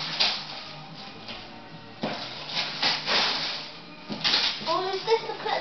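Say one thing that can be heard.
Wrapping paper rustles and tears as a gift is unwrapped close by.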